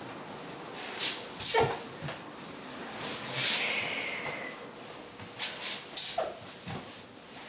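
A man breathes out sharply with effort.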